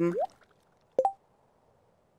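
A short chime sounds as a menu opens.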